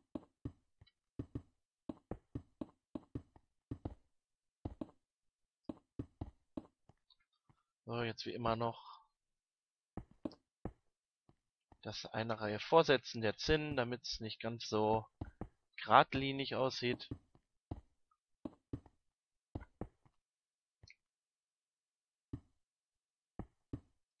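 Stone blocks are placed one after another with short dull knocks.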